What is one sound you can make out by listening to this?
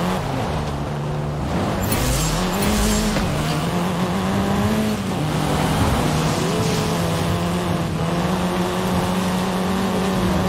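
A car engine revs and drones steadily, shifting pitch as the car speeds up.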